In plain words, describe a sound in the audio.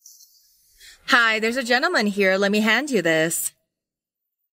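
A young woman speaks gently, close by.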